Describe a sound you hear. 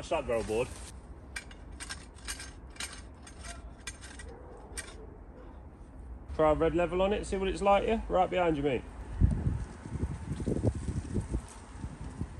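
A hand trowel scrapes and digs into dry soil.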